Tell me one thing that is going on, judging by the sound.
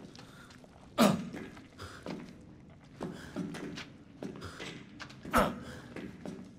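A knife slashes and thuds into a hanging body.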